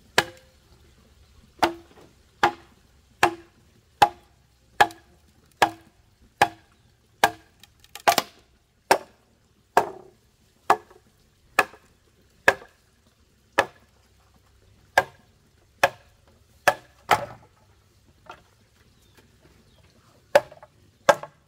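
A wooden mallet knocks sharply on a blade driven into bamboo, in a steady rhythm.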